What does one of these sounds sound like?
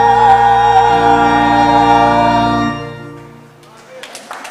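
A choir sings together.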